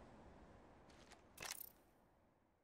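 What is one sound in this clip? A short game menu sound plays as a prompt pops up.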